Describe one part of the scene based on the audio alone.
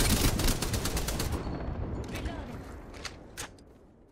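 A weapon clicks and clatters as it is reloaded.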